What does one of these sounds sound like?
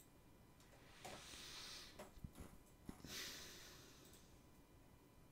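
A man breathes out noisily close to a microphone.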